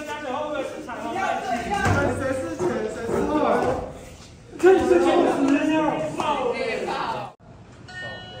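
Young men talk loudly and excitedly nearby.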